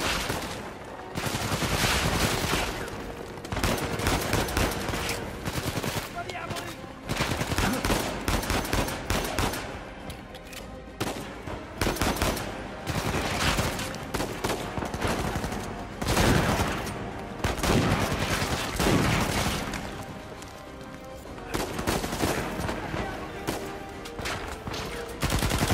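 Gunshots fire repeatedly and echo through a large hall.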